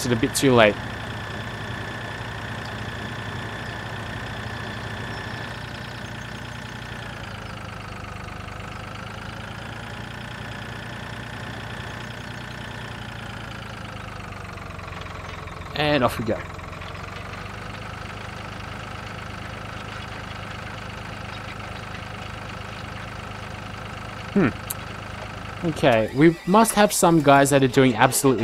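A tractor engine hums steadily, rising and falling in pitch.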